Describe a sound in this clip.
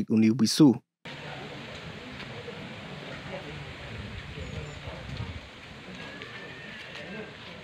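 A crowd of elderly men murmurs and chats outdoors.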